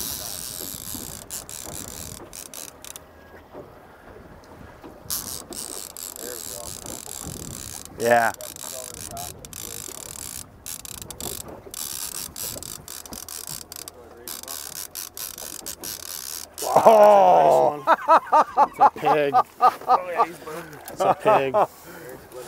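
Wind blows outdoors on open water.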